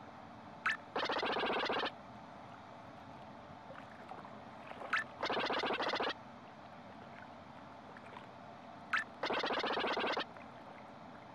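A cartoon character chatters in quick, high gibberish blips.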